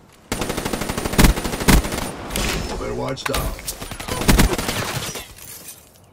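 A rifle fires rapid bursts of loud gunshots.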